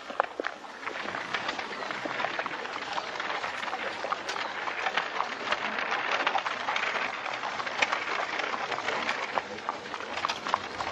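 A horse's hooves clop on a dirt track.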